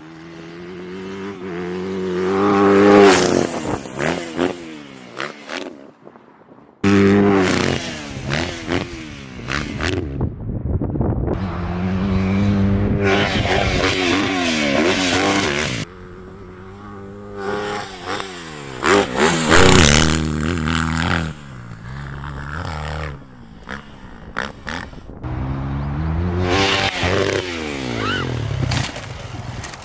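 A dirt bike engine revs loudly, rising and falling in pitch as it passes close by.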